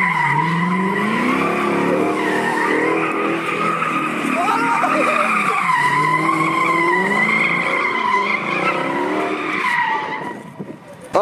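Tyres squeal loudly on pavement.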